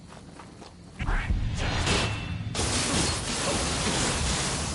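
Swords clash and slash in a loud fight.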